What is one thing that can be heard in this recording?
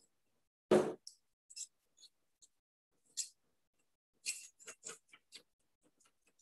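A whisk taps and scrapes against a bowl.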